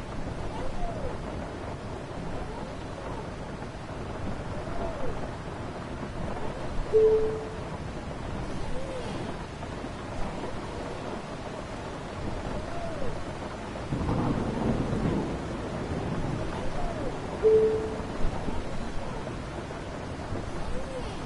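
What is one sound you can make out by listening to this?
Rain patters on a windscreen.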